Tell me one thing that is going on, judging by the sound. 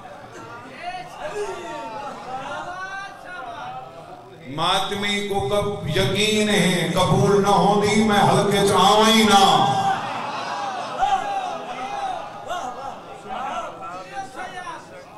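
A young man speaks passionately into a microphone, his voice rising to a loud, drawn-out chant at times.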